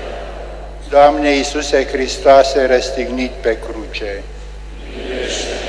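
A man sings a chant in a large echoing hall.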